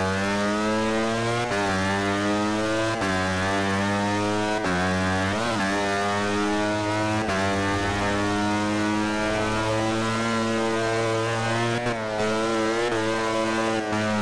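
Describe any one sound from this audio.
A motorcycle engine screams at high revs, shifting up through the gears.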